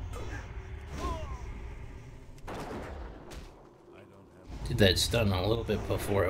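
Blades slash and strike in a fight.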